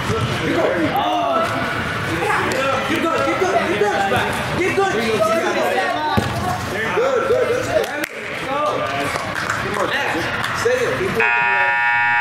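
Young boys call out to each other in a large echoing hall.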